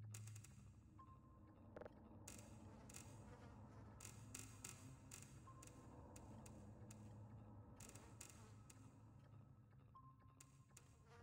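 A console gives short electronic beeps.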